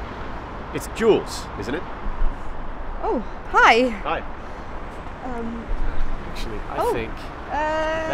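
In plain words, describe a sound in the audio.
A man speaks cheerfully and close to the microphone.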